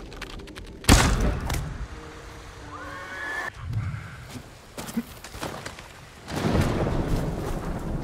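Wind blows in gusts.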